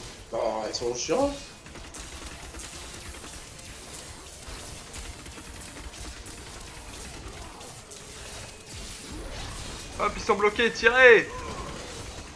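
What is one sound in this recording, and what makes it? Electric magic crackles and zaps in quick bursts.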